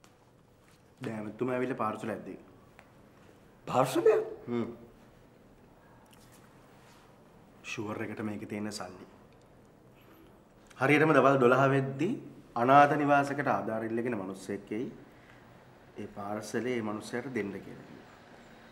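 A younger man speaks with animation close by.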